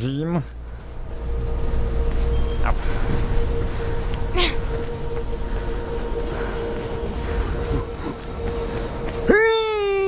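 Quick footsteps thud on a hard rooftop.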